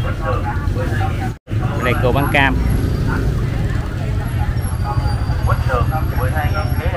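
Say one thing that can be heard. Women talk casually nearby.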